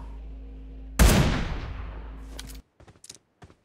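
A single loud rifle shot booms and echoes away.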